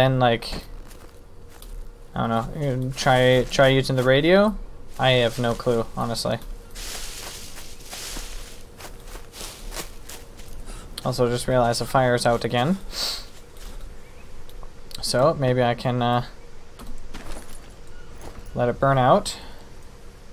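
A young man talks calmly into a close microphone, in bursts with pauses.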